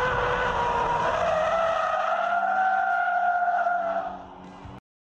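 A car engine roars loudly at high revs.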